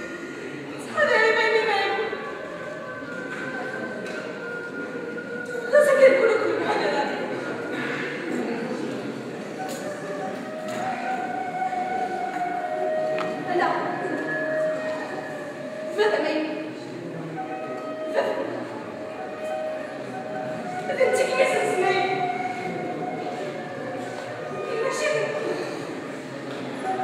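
A woman cries out and speaks emotionally in a large echoing hall.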